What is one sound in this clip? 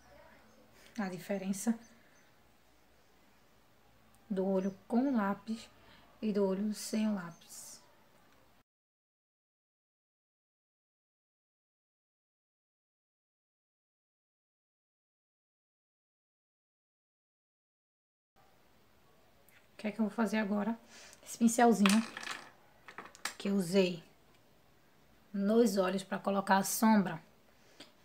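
A young woman talks calmly and close to a microphone, with pauses.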